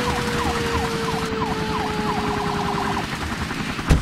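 A fire engine siren wails.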